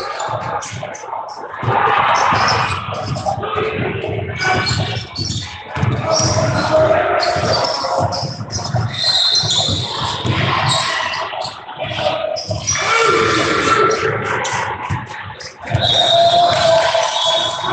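Voices of players and spectators call out and shout in a large echoing gym.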